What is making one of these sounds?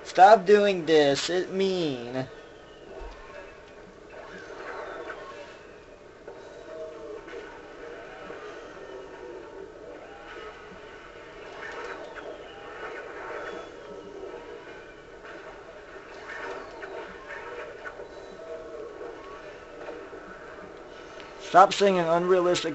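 Electronic game music plays from a loudspeaker.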